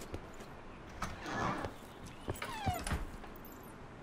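A metal door creaks open.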